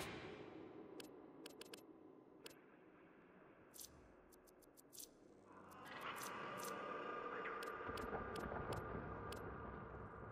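Short interface clicks tick in quick succession.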